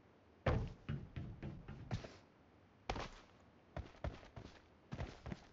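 Footsteps thud on a metal roof in quick bursts.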